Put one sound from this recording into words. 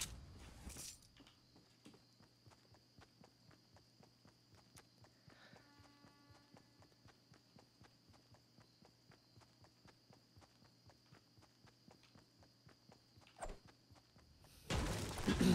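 Footsteps run quickly and steadily over grass.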